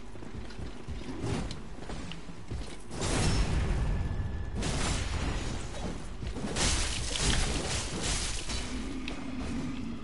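Swords clash and strike armour.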